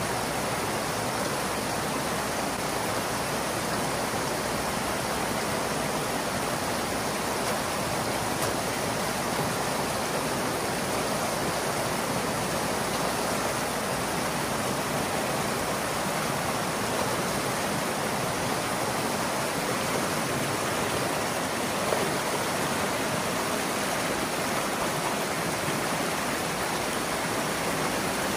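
Water gushes and splashes steadily from a pipe into a shallow stream.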